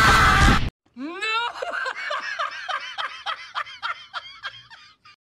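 A man laughs loudly and wildly in bursts.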